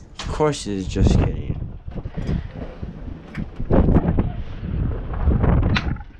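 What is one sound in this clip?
Wind blows outdoors across the microphone.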